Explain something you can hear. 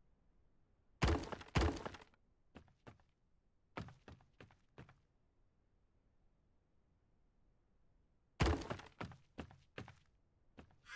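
Building pieces snap into place with sharp knocks.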